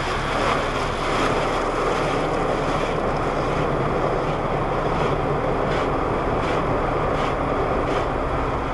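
Car wash brushes swish and slap against the glass.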